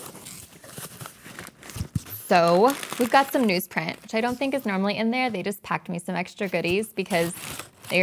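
Paper packing crinkles and rustles.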